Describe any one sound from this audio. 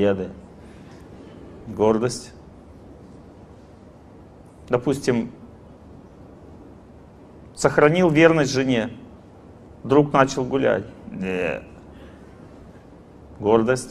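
A middle-aged man speaks into a microphone in short, animated phrases with pauses.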